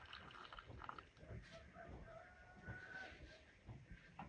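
Water pours from a tap into a glass teapot.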